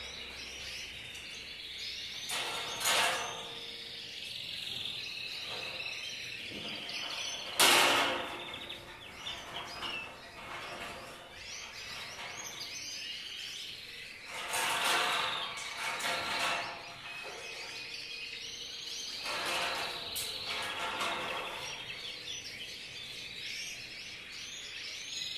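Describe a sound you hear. Small birds chirp and twitter steadily nearby.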